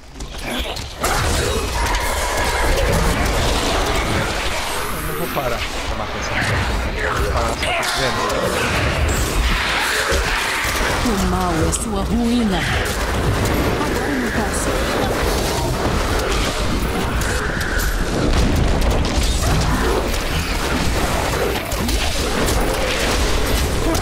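Magic blasts crackle and explode in a fast, busy fight.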